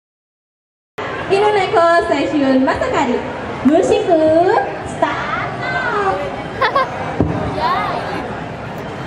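Young women sing together through microphones.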